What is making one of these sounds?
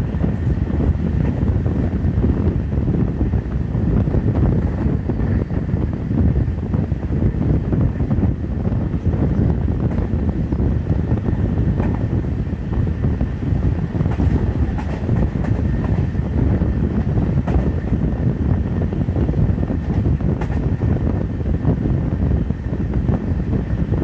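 Wind rushes past the open window.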